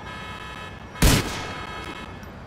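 A pistol fires a single loud shot that echoes down the street.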